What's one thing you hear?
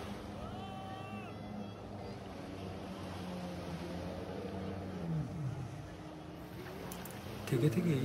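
A jet ski roars past close by.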